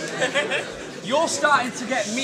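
A man raps with animation over a microphone.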